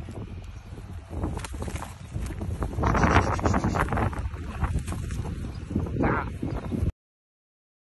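A large bird flaps its wings noisily.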